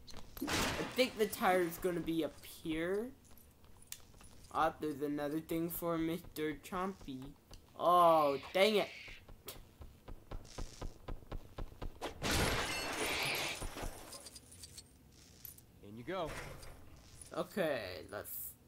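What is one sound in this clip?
Small coins clink and jingle.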